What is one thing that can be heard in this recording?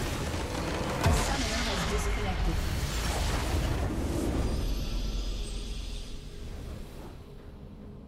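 A loud magical blast booms and crackles, then slowly fades.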